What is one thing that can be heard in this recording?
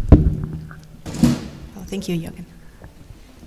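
A woman speaks briefly through a microphone in a large, echoing hall.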